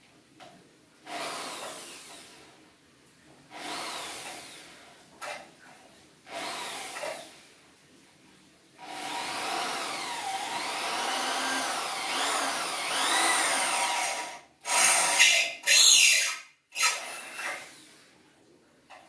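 A metal door frame scrapes and knocks as it is pushed into place.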